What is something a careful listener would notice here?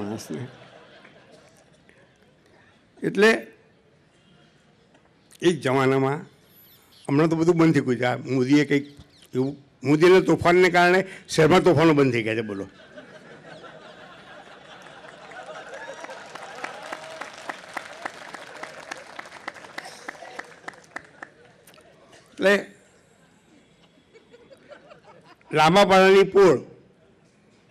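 An elderly man speaks slowly into a microphone, with long pauses.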